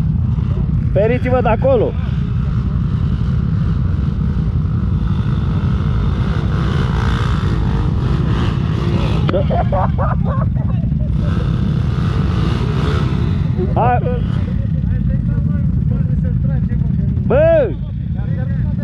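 A dirt bike engine revs hard in short bursts nearby.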